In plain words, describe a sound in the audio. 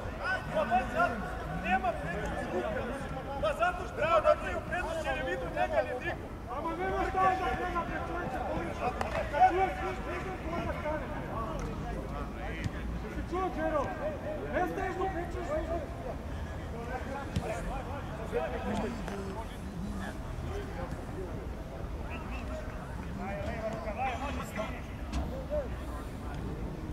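Young men shout to each other from a distance across an open pitch outdoors.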